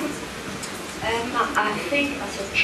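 A woman speaks loudly into a microphone through loudspeakers.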